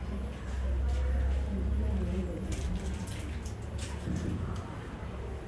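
A man speaks calmly into a microphone in a room.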